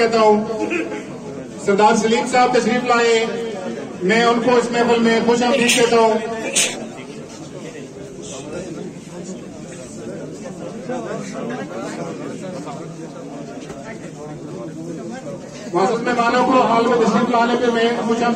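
A man nearby speaks loudly with animation.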